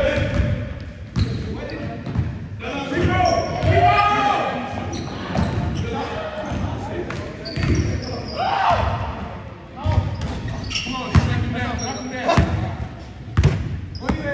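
Young men shout and talk during a game.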